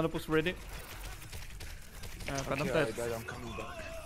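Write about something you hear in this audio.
Sniper rifle shots crack in a video game.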